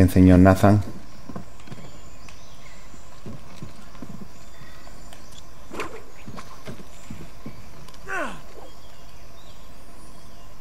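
Footsteps thud softly on wooden boards and undergrowth.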